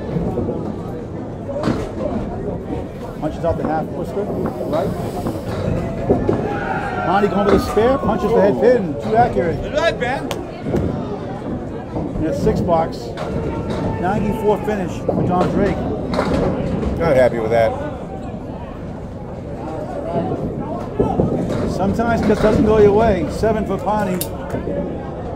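A crowd of men and women chatters nearby in a large echoing hall.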